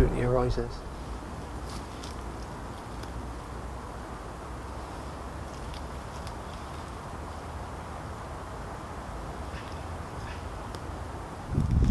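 A man walks through grass with soft footsteps.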